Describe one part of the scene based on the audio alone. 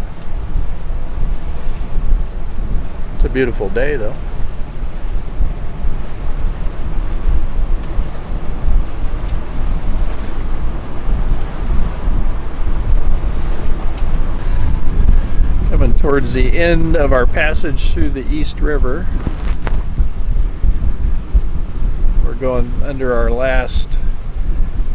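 Water laps and splashes against a boat's hull.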